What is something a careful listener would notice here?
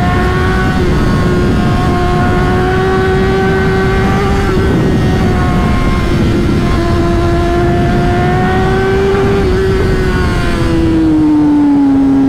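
Wind rushes past loudly as the motorcycle rides.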